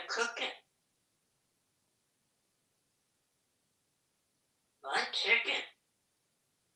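A parrot chatters in short bursts close by, mimicking speech.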